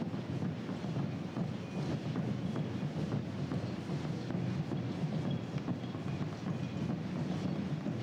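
A runner's shoes slap on the road in a quick, steady rhythm.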